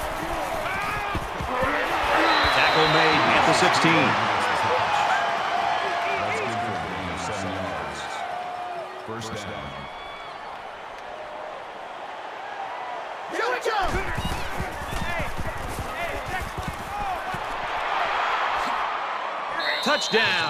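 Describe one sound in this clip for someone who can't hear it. A large crowd cheers and roars, swelling and fading.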